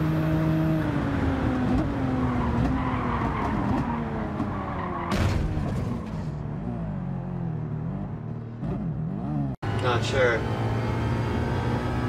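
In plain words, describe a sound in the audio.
A racing car engine roars and winds down as the car slows.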